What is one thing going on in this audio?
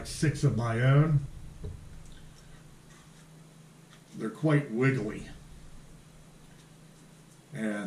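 A man speaks calmly and close through a microphone, in short phrases.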